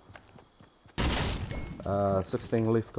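A pickaxe strikes wood with a heavy thud.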